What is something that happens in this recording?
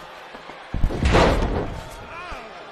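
A heavy body slams down onto a wrestling ring mat.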